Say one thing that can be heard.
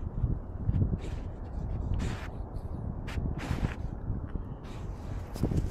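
A dog sniffs loudly close by.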